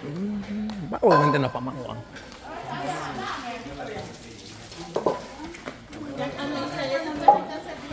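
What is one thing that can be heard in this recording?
A group of people chat.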